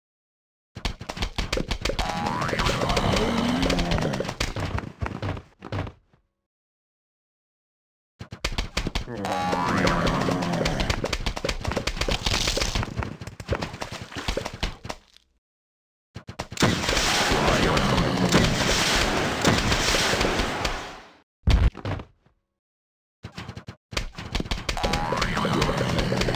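Game plants pop and thud as they fire peas at zombies.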